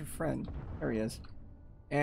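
A plasma gun fires with a crackling burst.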